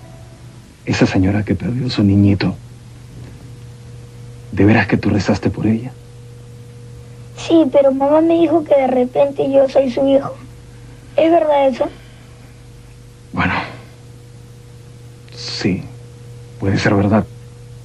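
A man speaks in a low, gentle voice.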